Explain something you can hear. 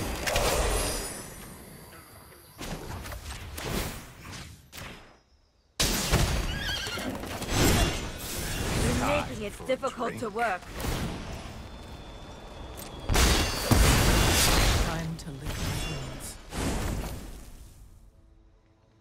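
Magical whooshing and shimmering sound effects play as cards are cast.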